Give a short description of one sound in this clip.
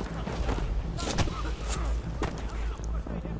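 Gunshots crack sharply in a short burst.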